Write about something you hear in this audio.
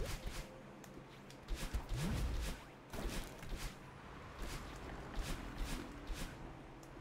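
Quick whooshing game sound effects play again and again.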